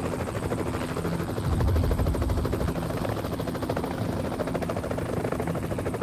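A helicopter's rotor thumps.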